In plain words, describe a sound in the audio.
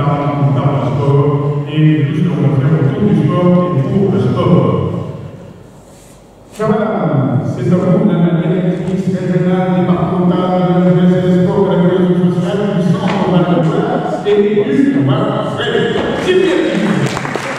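A man speaks steadily into a microphone, heard through loudspeakers in a large echoing hall.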